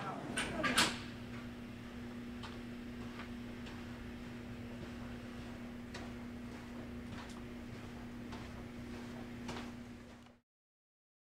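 Footsteps approach along a hallway.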